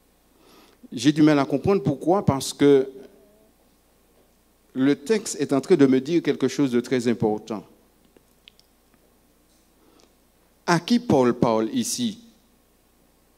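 A man speaks slowly and expressively into a microphone, heard through a loudspeaker, with long pauses.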